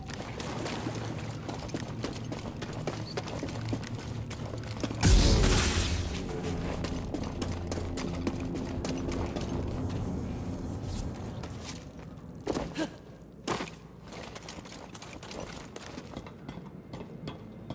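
Footsteps patter quickly over grass and stone.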